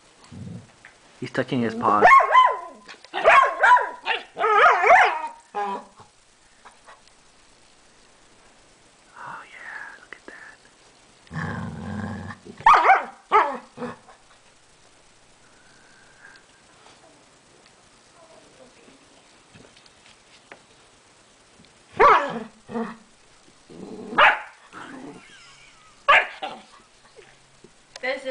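Two dogs growl and bark playfully at each other close by.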